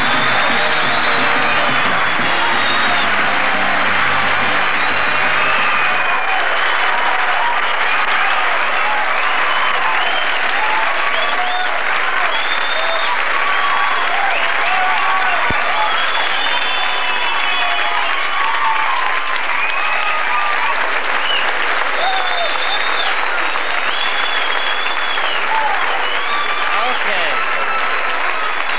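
A large crowd cheers and whistles.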